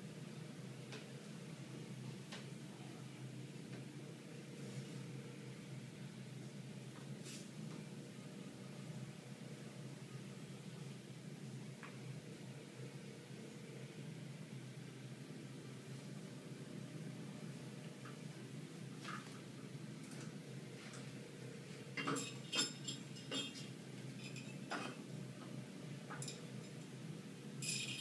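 A metal bar creaks and clinks as a man pulls up on it.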